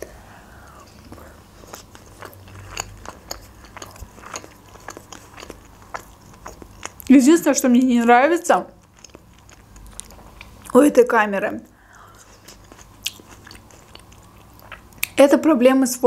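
A young woman chews food with soft, wet mouth sounds.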